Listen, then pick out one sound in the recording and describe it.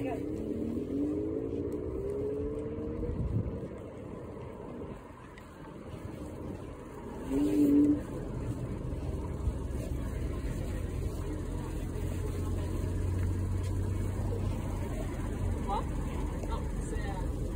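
A car engine idles nearby with a low hum.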